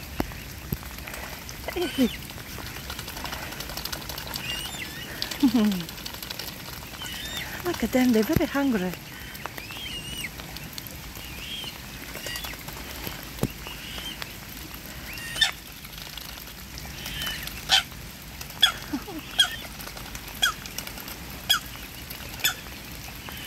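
Swans dabble and peck at the water's edge.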